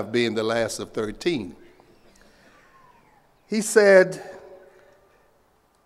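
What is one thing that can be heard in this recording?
An older man speaks slowly and formally into a microphone over loudspeakers, his voice echoing outdoors.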